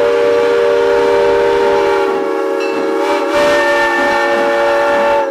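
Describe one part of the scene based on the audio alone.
A steam locomotive's whistle blows a long, steady chord close by.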